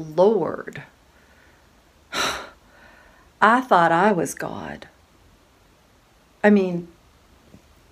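A middle-aged woman talks close to the microphone with animation, in short bursts.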